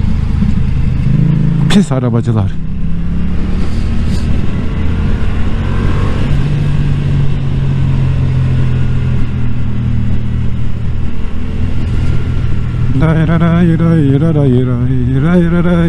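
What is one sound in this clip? A motorcycle engine hums steadily close by.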